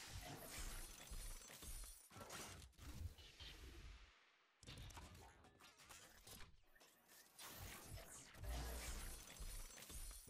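Electricity crackles and sparks.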